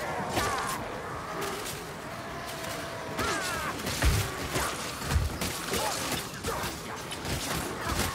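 Monsters snarl and shriek in sliding cries.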